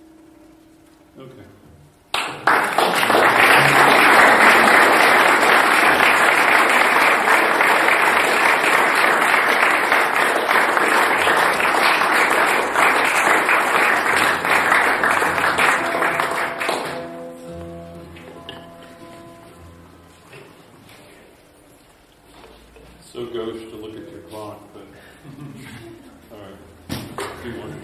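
An acoustic guitar is plucked close by.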